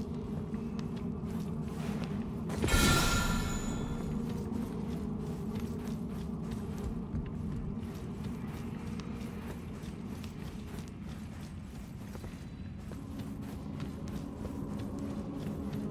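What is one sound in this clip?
Footsteps crunch quickly over loose gravel and rock.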